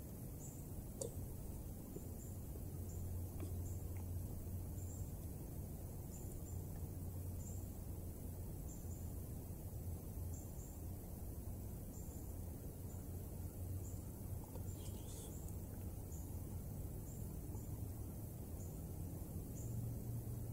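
A spoon clinks and scrapes against a metal cup.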